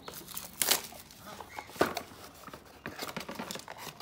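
Plastic wrapping crinkles as hands open it.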